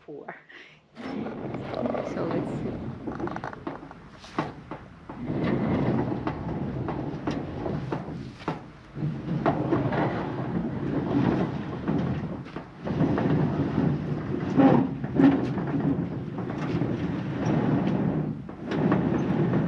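Wind blusters loudly outdoors.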